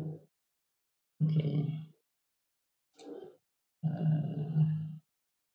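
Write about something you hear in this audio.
A young man speaks calmly into a microphone, in short phrases.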